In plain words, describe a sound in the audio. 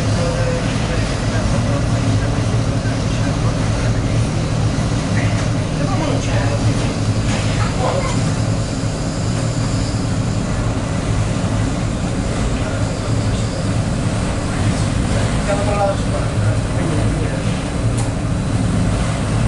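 Water washes against a boat's hull.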